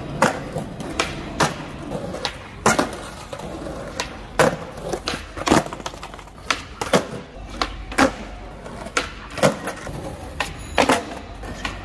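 A skateboard clacks sharply as it pops and lands.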